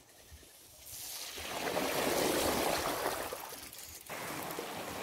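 A bicycle splashes through shallow water.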